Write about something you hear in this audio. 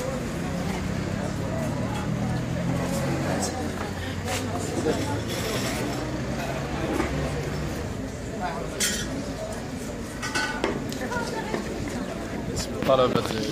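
A crowd of people talk and murmur outdoors.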